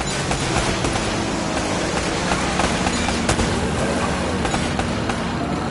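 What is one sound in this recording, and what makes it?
A motorboat engine roars nearby.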